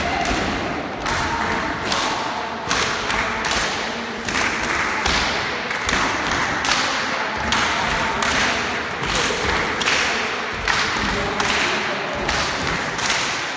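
A group of people clap their hands in rhythm.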